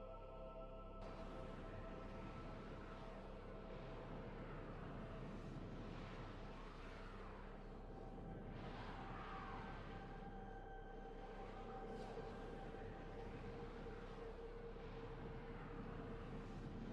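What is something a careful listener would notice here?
A spaceship engine roars steadily as the craft flies.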